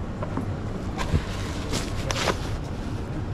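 A paper towel tears off a roll with a rustle.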